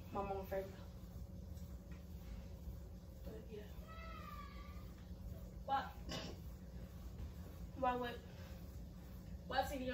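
A girl speaks with animation nearby.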